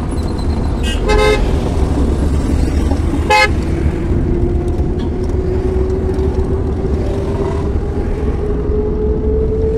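A car drives on an asphalt road, heard from inside the cabin.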